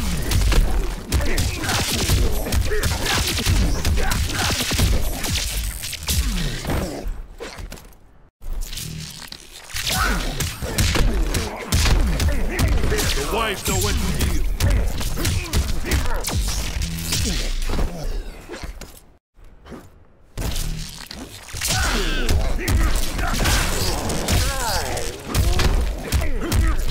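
Heavy punches and kicks land with loud thuds in quick succession.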